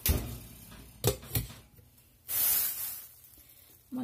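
A glass lid clinks onto a metal pot.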